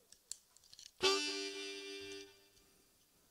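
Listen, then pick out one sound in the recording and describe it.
A harmonica plays a short steady phrase.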